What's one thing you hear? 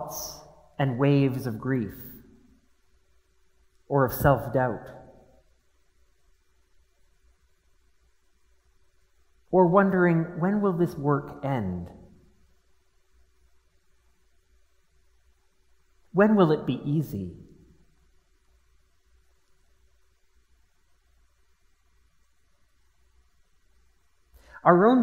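A middle-aged man speaks calmly into a microphone in short phrases with long pauses.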